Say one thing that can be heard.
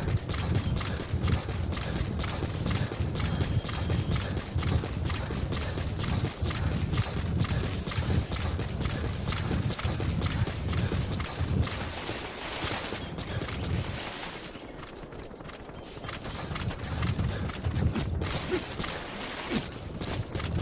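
Footsteps thud quickly on dry dirt and gravel.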